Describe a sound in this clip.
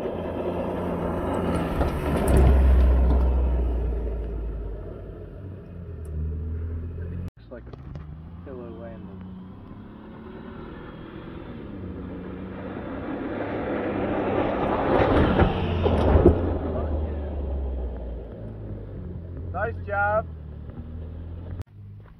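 An off-road vehicle's engine revs loudly as it drives through sand.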